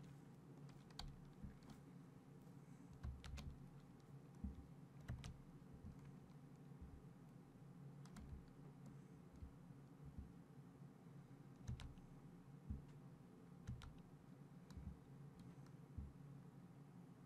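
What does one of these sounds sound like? Water rushes along a ship's hull.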